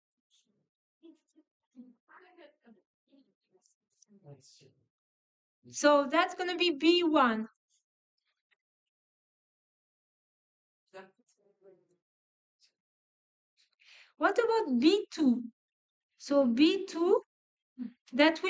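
A woman speaks calmly into a microphone, explaining in short bursts with pauses.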